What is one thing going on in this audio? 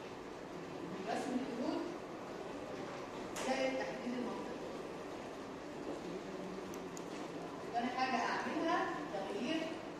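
A woman speaks calmly, as if explaining.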